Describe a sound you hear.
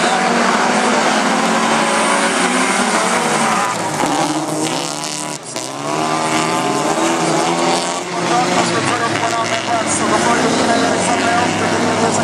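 Several racing car engines roar and rev loudly.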